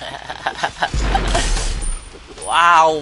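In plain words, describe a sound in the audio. A magic blast bursts with a crackling boom.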